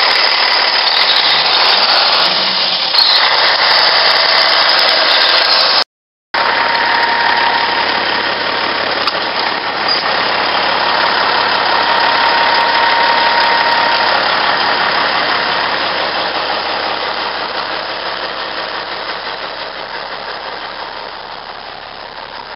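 A semi-truck's turbocharged Caterpillar C15 diesel engine idles.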